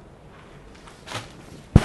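Silk fabric rustles as it is handled.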